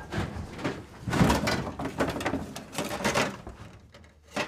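Glass bottles clink and rattle in a box.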